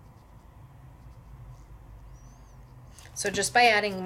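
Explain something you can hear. A small paintbrush strokes softly across paper.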